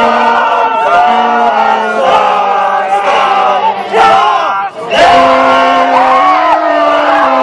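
A crowd of men and women sings loudly close by.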